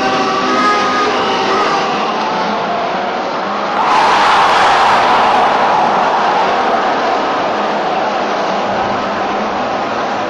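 A large stadium crowd cheers and roars, swelling suddenly louder.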